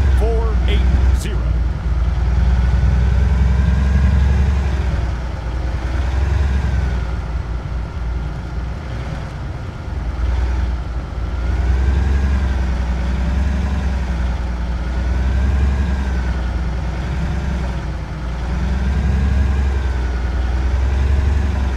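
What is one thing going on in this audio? A vehicle engine rumbles steadily, its pitch rising and falling as it drives.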